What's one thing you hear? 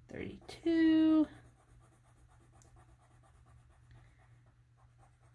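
A felt marker rubs softly across paper.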